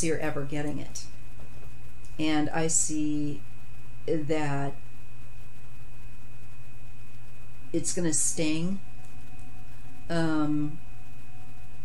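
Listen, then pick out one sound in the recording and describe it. A middle-aged woman speaks calmly and slowly in short phrases, close to a microphone.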